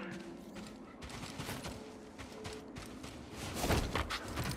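Footsteps run quickly over sandy ground.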